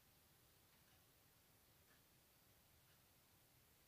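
A soft roll of clay is set down on a mat with a faint tap.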